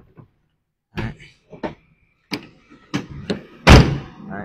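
A tailgate latch clicks open.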